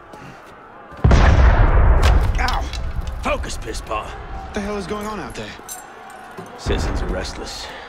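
Heavy thuds land with a deep boom.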